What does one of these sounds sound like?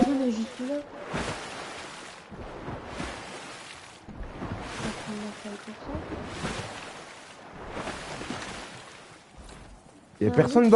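Water splashes in regular strokes as a swimmer moves through it.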